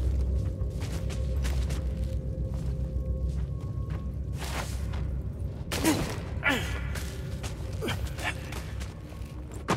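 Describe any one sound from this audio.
Leaves rustle as a person climbs through thick moss.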